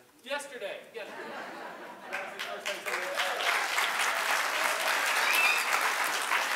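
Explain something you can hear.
An audience claps and applauds, growing louder.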